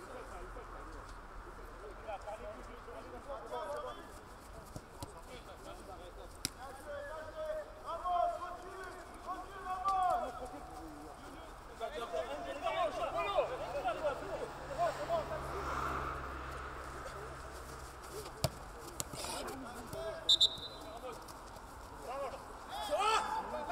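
Men shout and call out across an open outdoor field.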